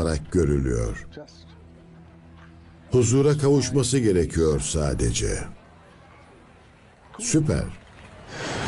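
An elderly man speaks calmly and slowly close by.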